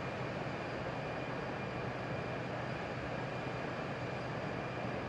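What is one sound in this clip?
Jet engines roar steadily, heard from inside a cockpit.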